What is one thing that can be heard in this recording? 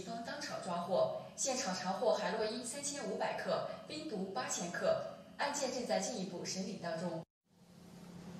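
A woman speaks calmly through a television loudspeaker.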